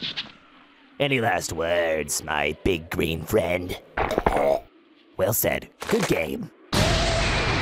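A man speaks calmly and menacingly.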